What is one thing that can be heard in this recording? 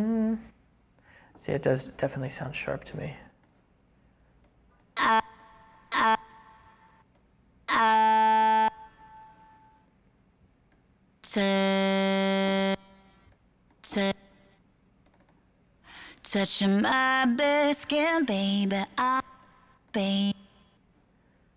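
A recorded singing voice plays back in short bursts over speakers.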